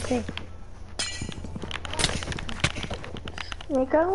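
A sword strikes a creature with sharp thuds.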